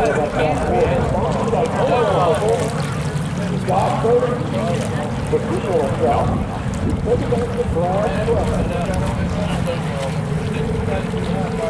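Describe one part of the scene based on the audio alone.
Boat engines drone steadily in the distance.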